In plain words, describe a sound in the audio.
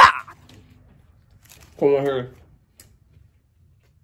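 A young man chews food with his mouth close to the microphone.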